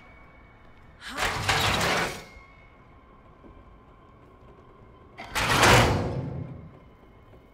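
A wooden door creaks as it swings.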